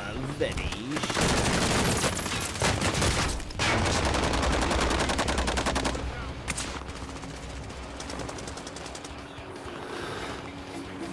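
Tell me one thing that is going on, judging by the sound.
Helicopter rotors whir and chop loudly.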